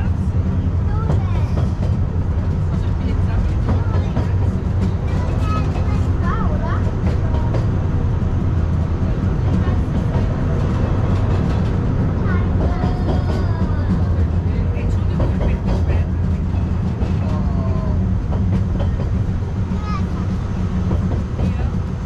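Children's voices chatter nearby.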